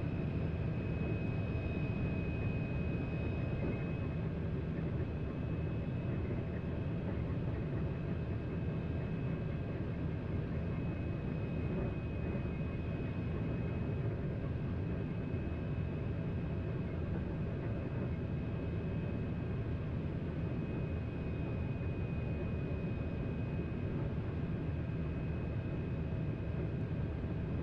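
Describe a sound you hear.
A high-speed train rumbles steadily along the track.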